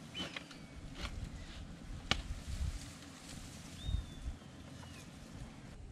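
Firewood knocks and clatters as it is fed into a stove.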